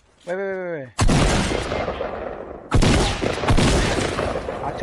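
Shotgun blasts go off loudly, one after another.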